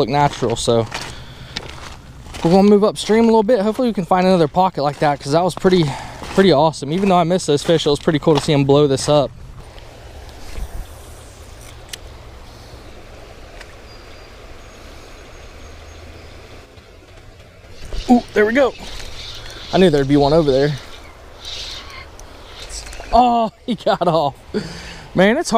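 Shallow river water flows and ripples gently nearby.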